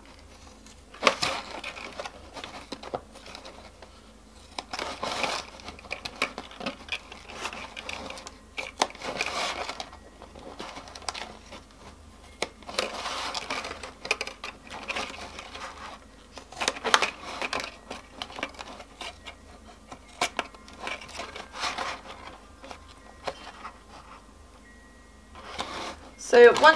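Plastic crinkles and rustles as it is handled.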